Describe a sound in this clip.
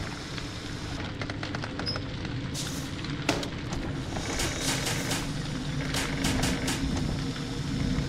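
Sparks crackle and snap in sharp bursts.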